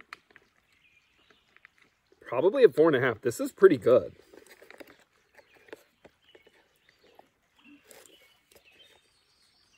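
A man chews food.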